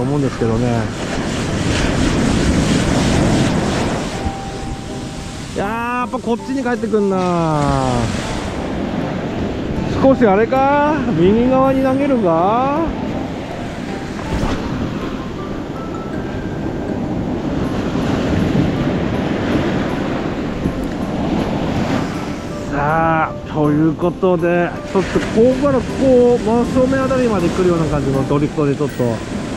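Waves wash and roar onto a shore, outdoors.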